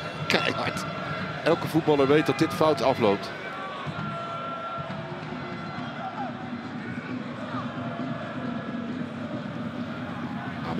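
A large crowd cheers and chants in a stadium.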